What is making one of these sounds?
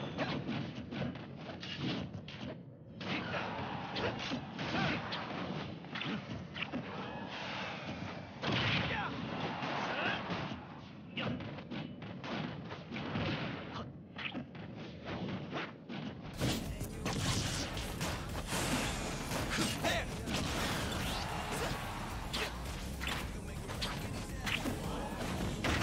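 Punches, slashes and blasts from a fast fighting game crack and boom rapidly.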